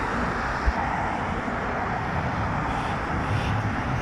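A bus engine hums as it pulls close.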